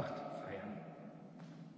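A man speaks briefly, echoing in a large hall.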